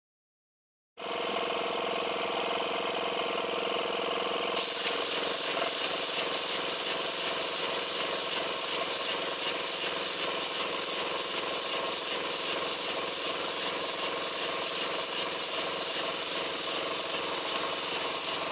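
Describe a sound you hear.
A machine hums steadily with a whirring drone.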